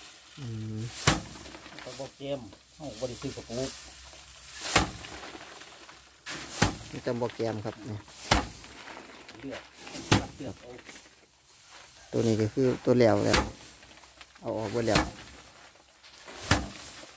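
Bundles of rice stalks thump hard against a wooden board, again and again.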